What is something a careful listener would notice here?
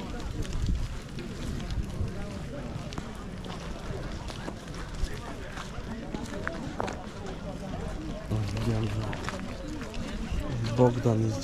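Footsteps crunch on soft, dirty ground outdoors.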